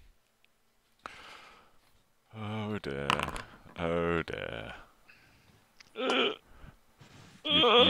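Several men talk over an online call.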